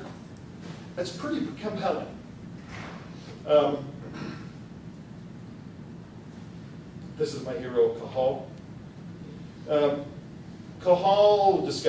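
A man speaks calmly into a microphone in a room, in short phrases with pauses.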